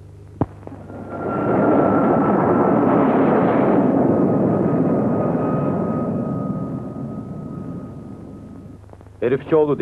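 A jet plane roars loudly overhead and slowly fades.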